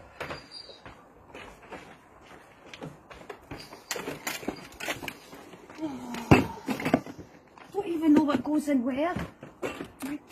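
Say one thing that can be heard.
Glass bottles and cans rattle and clink in a plastic box.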